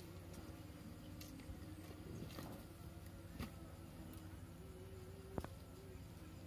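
A large lizard tears and chews at raw meat with wet ripping sounds.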